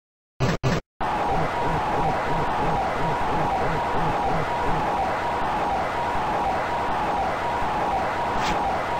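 Electronic game music plays with a steady, repeating beat.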